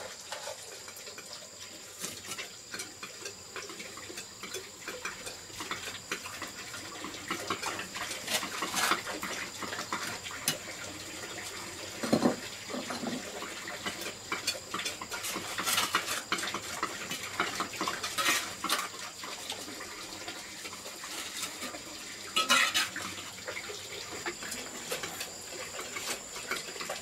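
A trowel scrapes and taps wet mortar onto bricks.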